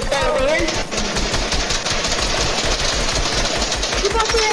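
An automatic gun fires rapid shots in a video game.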